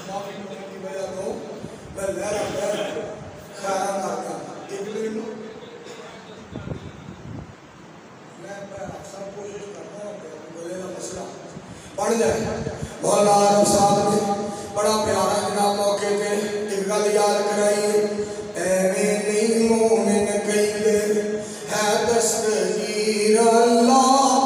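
A man sings a melodic chant into a microphone, heard through loudspeakers with a slight echo.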